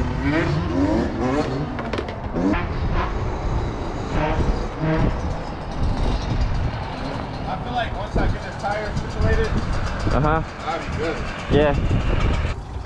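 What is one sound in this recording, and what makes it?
A dirt bike engine revs up and down sharply, close by.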